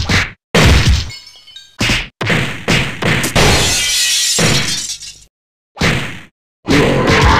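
Punches and kicks land with loud thuds and smacks.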